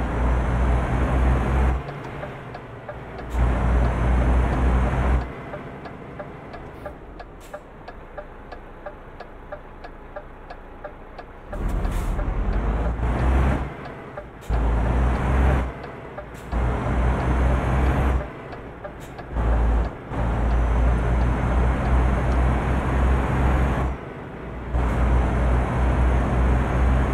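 A truck engine rumbles loudly, rising and dropping in bursts as it accelerates.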